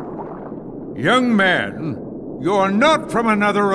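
An older man speaks sternly and angrily.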